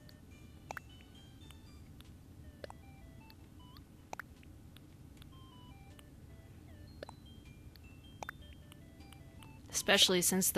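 Soft game menu blips and clicks sound as a cursor moves between items.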